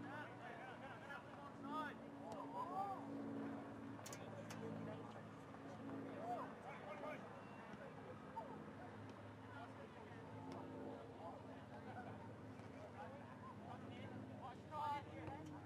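A crowd of spectators chatters and calls out nearby, outdoors.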